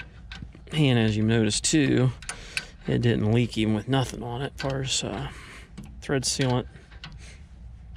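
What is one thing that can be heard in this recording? A wrench clicks while tightening a fitting.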